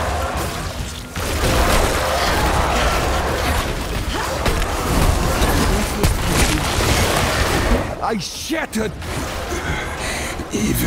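Weapons clash and magic bursts in a fast, noisy fight.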